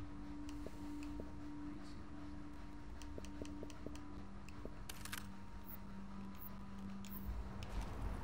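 Short soft clicks sound as a game menu is browsed.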